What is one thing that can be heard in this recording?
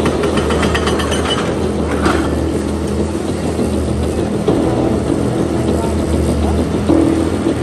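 Concrete rubble cracks and tumbles as an excavator tears at a wall.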